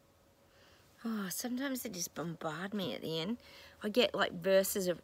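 A middle-aged woman speaks close to the microphone with animation.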